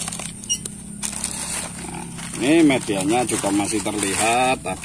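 A plastic bag crinkles as it is peeled away.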